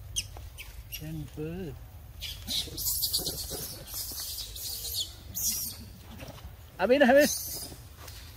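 A monkey gives short high squealing calls nearby.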